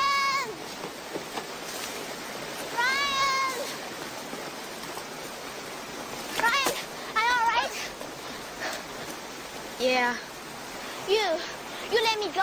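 A fast river rushes and splashes steadily.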